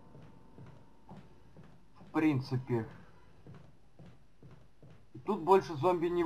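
Footsteps run on a wooden floor.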